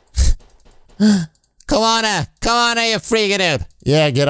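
A young man speaks loudly and with animation, close to a microphone.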